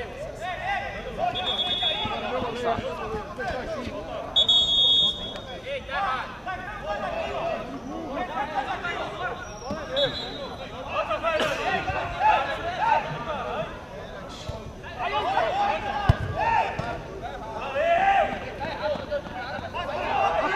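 Men shout and call to each other.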